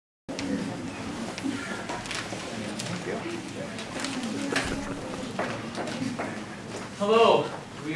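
A man speaks calmly to an audience in an echoing room.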